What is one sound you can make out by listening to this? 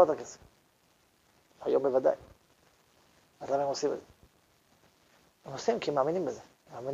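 A middle-aged man speaks calmly in short phrases, with pauses.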